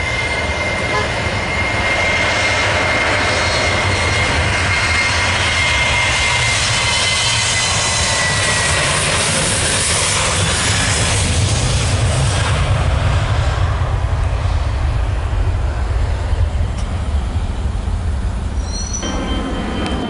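Jet engines roar loudly as an airliner races down a runway and brakes.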